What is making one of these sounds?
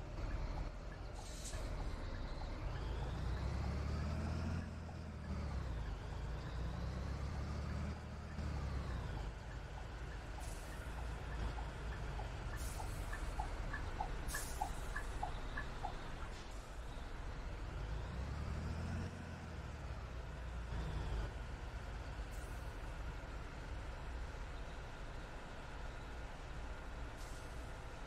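A bus engine rumbles low and steadily, rising and falling in pitch as it speeds up and slows.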